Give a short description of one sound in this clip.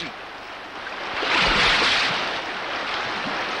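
A loud rush of splashing water surges up.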